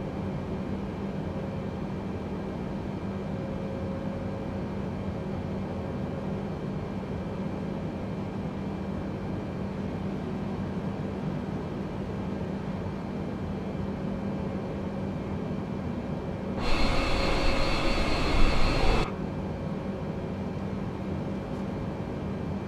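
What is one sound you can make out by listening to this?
Jet engines hum steadily from inside a cockpit.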